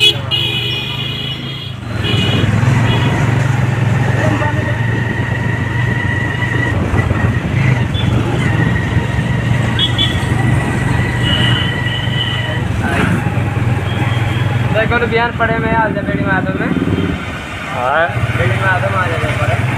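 A motorcycle engine hums steadily while riding along a street.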